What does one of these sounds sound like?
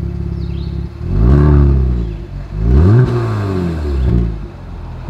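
A car engine revs up sharply twice, roaring through the exhaust.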